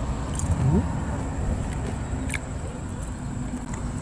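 A man chews food, close to a microphone.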